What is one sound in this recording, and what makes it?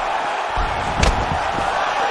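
A kick lands with a heavy thud.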